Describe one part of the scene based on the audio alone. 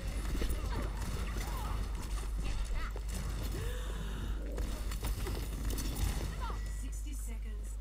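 Video game gunfire crackles rapidly.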